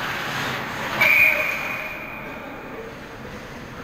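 A whistle blows a long shrill note.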